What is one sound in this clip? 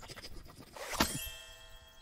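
A stamp thumps down with a chime.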